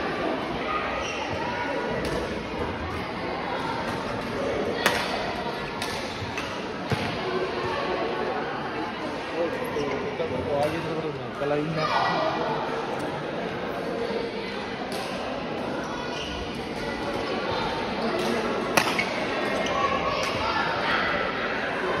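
Voices of men chatter in a large echoing hall.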